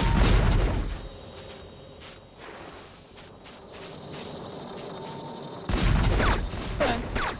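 Quick light footsteps patter across the ground.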